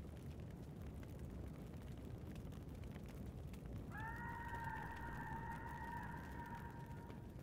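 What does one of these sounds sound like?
A campfire crackles and hisses.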